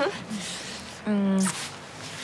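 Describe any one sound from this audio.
A young woman squeals with delight during a hug.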